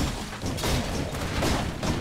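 A magical blast booms and crackles.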